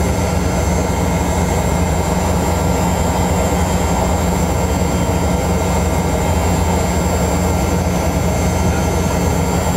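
Wheels rumble over a runway.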